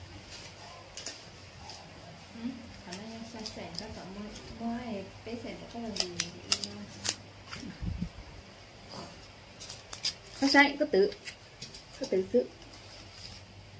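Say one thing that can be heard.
Paper banknotes rustle and flick as they are counted.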